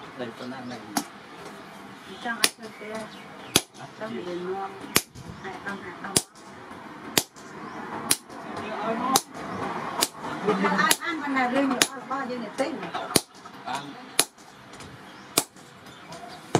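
A mechanical hammer pounds metal on an anvil with sharp, evenly spaced clangs.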